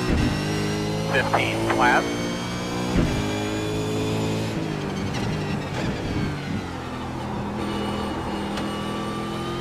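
A race car engine roars loudly, its pitch dropping and jumping as gears change.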